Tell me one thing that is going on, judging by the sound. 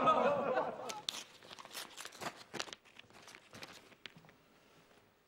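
Paper crinkles and rustles as it is unfolded close by.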